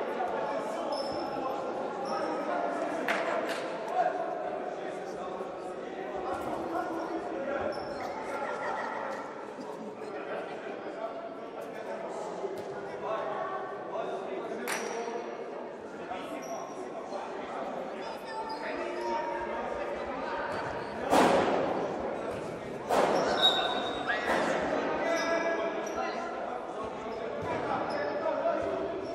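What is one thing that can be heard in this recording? A crowd of men and women talks and calls out in a large echoing hall.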